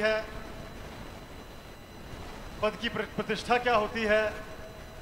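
A young man speaks loudly into a microphone over a loudspeaker, with animation.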